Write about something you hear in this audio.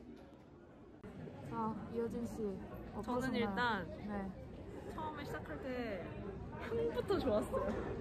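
Another young woman chats close by.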